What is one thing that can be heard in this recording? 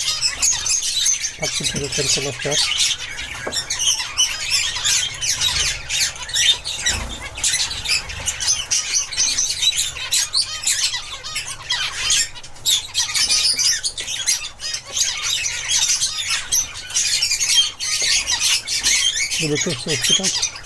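Young birds chirp and twitter rapidly and continuously close by.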